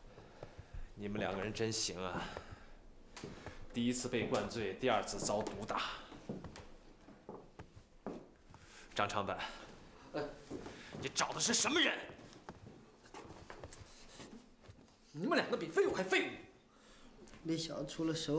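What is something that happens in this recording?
A man speaks sternly and mockingly, close by.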